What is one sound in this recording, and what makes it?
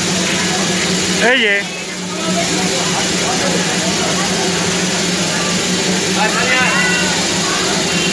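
A crowd of men, women and children chatters nearby.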